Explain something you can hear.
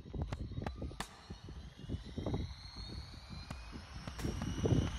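A model helicopter's motor whines and slowly rises in pitch.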